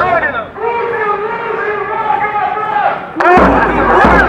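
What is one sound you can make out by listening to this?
A large crowd sings together outdoors.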